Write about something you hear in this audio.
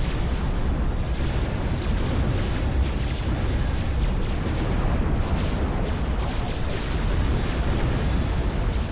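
Laser weapons fire and explosions boom in a battle.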